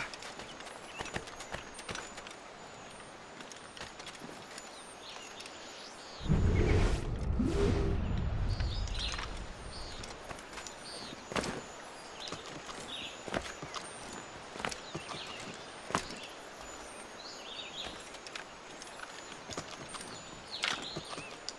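Footsteps crunch on grass and leaves.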